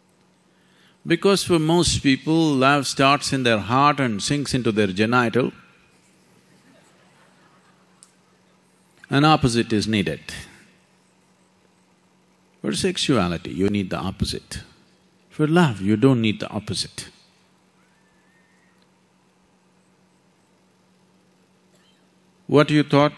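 An elderly man speaks calmly and deliberately into a microphone, with long pauses.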